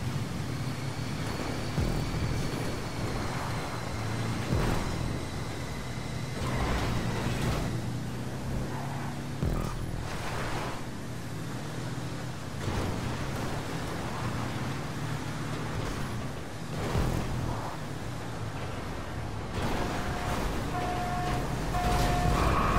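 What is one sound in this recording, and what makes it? An engine roars steadily as an off-road buggy races over rough ground.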